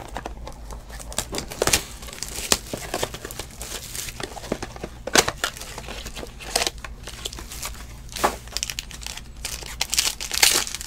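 A foil wrapper crinkles and rustles in someone's hands.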